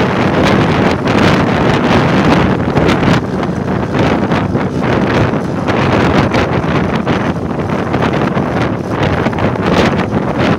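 Wind rushes loudly past a moving motorbike outdoors.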